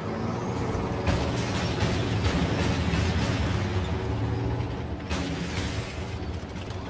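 Cannons fire in sharp bursts.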